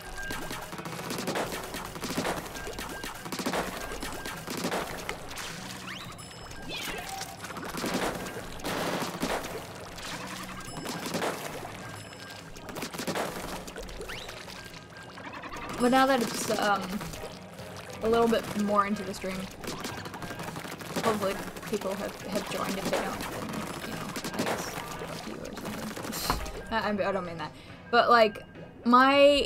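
A game's ink gun fires in rapid bursts with wet splattering.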